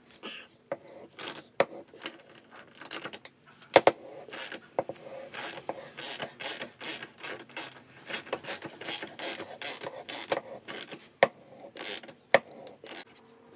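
Metal rasps and scrapes as a tap cuts a thread.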